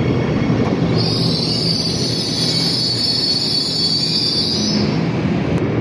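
Train wheels screech loudly on the rails.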